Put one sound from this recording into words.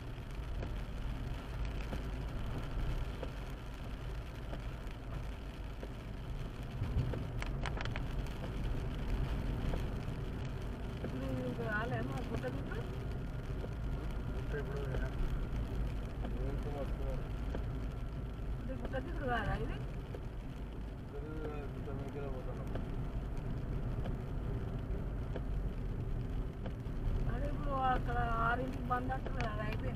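Tyres roll over a wet road.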